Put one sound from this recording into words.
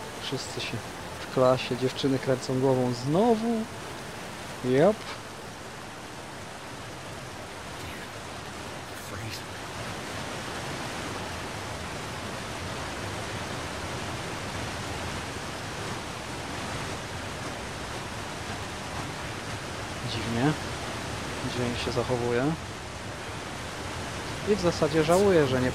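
Wind blows steadily over snow.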